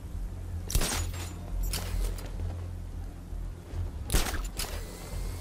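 A grappling line fires with a sharp whoosh.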